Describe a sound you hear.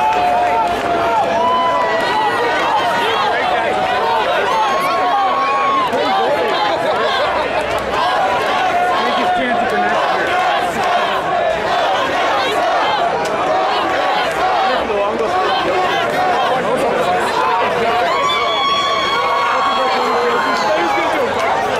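A large crowd of people shouts, cheers and chatters loudly outdoors.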